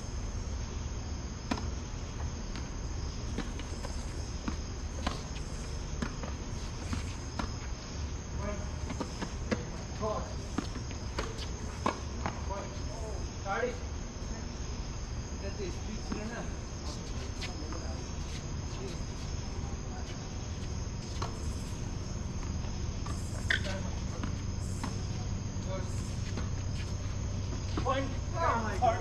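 Tennis balls are struck with rackets.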